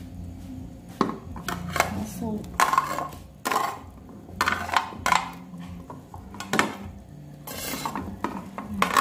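A metal spoon scrapes and knocks as vegetables are pushed into a pot.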